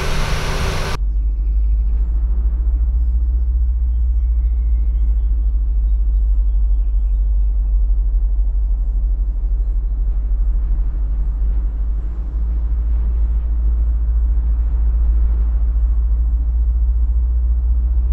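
A distant jet airliner drones low overhead.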